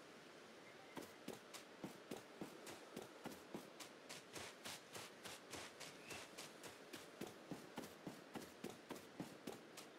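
Quick footsteps patter on grass and dirt.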